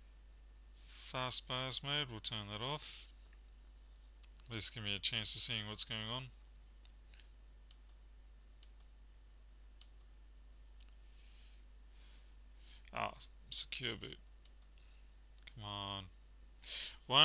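A man speaks calmly into a nearby microphone.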